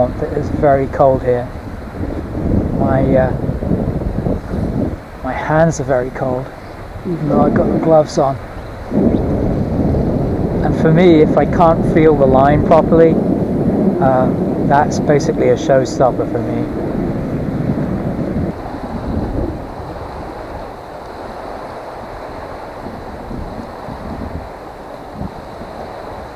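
Small waves lap and splash against a boat.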